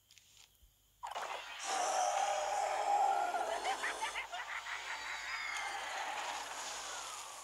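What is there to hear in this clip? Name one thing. A cartoonish blast bursts loudly and rumbles on with crackling sparkles.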